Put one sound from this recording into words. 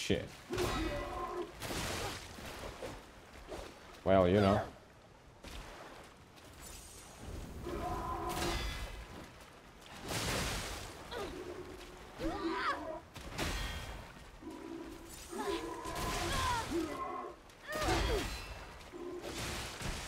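A warrior grunts with effort during the fight.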